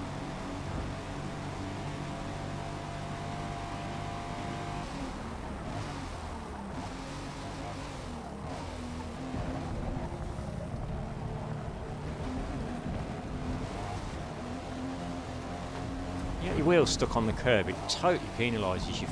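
A car engine roars at high revs, then drops and rises again through the corners.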